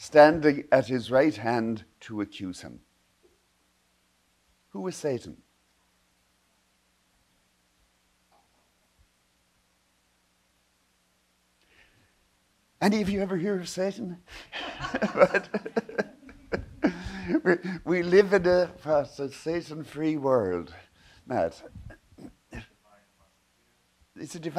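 An elderly man speaks calmly into a microphone, with long pauses.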